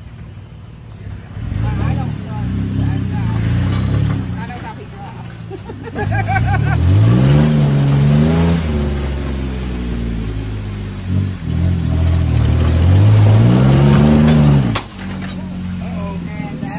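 An off-road vehicle's engine revs hard as it climbs over rocks.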